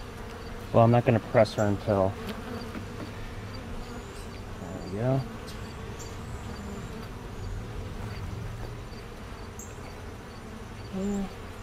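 Bees buzz softly around an open hive.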